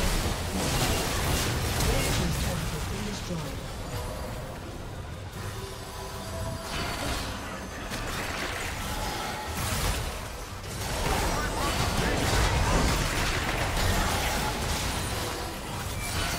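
Magic blasts crackle and boom in a busy fight.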